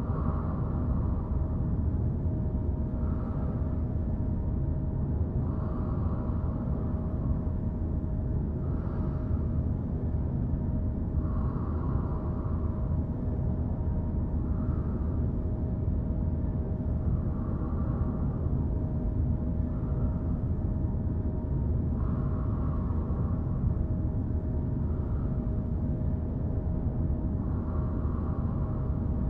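A drill grinds steadily with a deep, low rumble.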